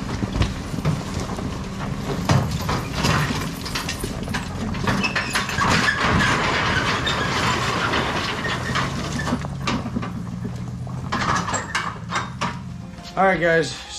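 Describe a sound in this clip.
A pickup truck's engine rumbles as it pulls a trailer away.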